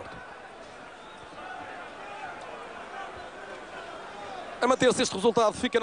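A crowd chants and cheers in a stadium far off.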